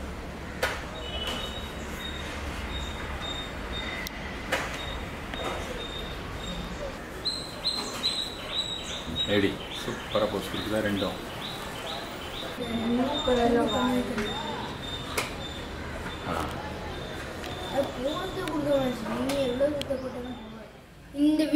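Small birds chirp softly in quick repeated notes.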